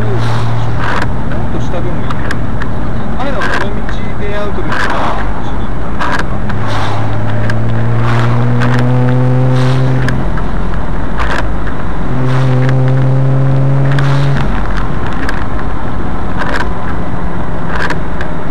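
Tyres roll over a wet road.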